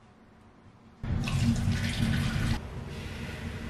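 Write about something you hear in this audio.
Liquid pours from a can into a blender jug.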